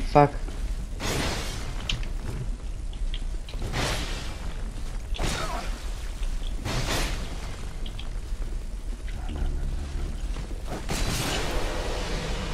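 A sword swings and strikes an armoured knight.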